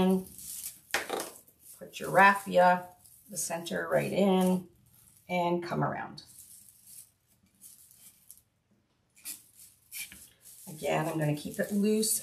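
Stiff ribbon and dry straw rustle and crinkle as they are handled.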